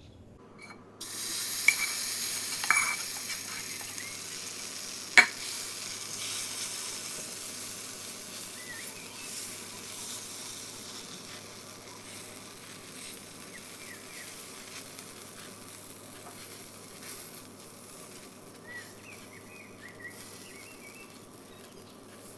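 Batter sizzles loudly in a hot pan, then slowly quietens.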